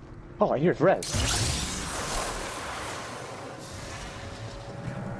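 A loud electric crackling whoosh rushes past and slowly fades.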